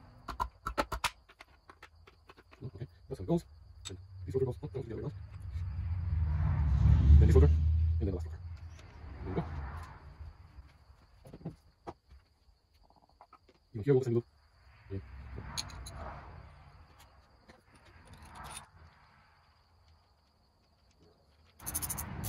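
Metal engine parts clink and knock together as they are handled.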